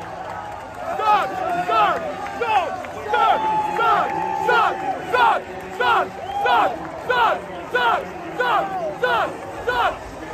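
A young man shouts and chants loudly up close.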